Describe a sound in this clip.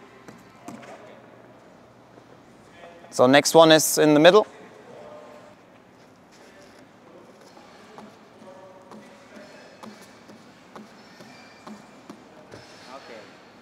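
Bare feet land with soft thuds on a mat.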